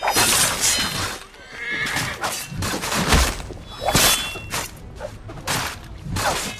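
Swords clash and clang in a close fight.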